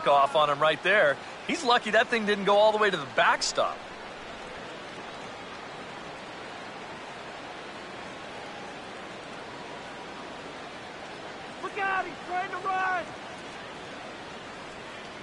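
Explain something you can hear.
A crowd murmurs steadily.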